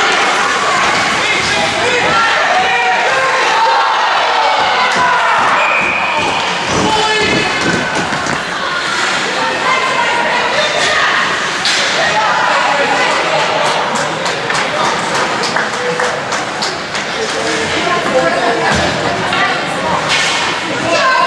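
Hockey sticks clack against the ice and each other.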